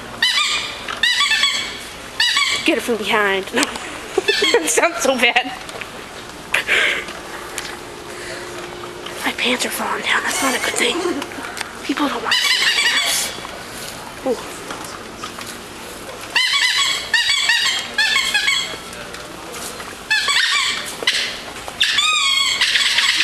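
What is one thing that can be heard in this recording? A woman laughs loudly in bursts.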